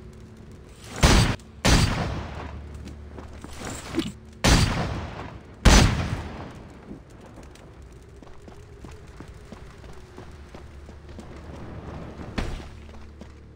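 Heavy gunshots boom several times and ring out.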